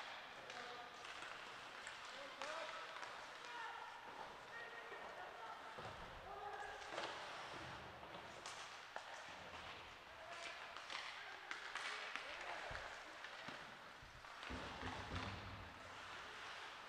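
Skates scrape and carve across the ice in an echoing rink.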